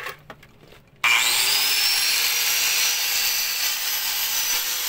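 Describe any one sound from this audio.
An angle grinder whines loudly as it cuts metal.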